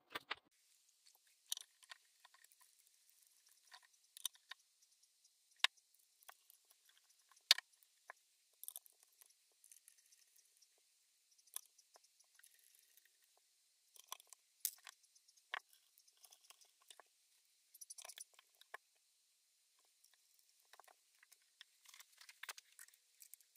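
Small metal parts click and clack against a wooden piece as they are fitted by hand.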